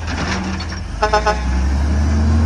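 A garbage truck beeps three times quickly.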